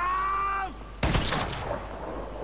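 A heavy blow strikes with a sharp thud.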